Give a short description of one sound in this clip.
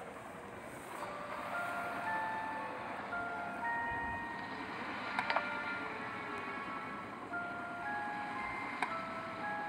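Light, cheerful game music plays with plinking notes.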